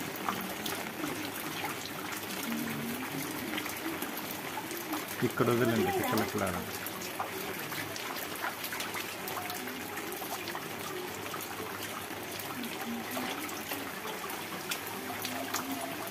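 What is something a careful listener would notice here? Hands splash lightly in shallow water.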